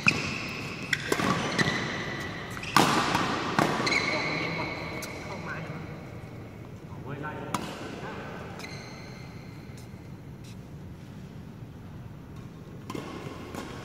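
A shuttlecock is struck sharply with a racket in a large echoing hall.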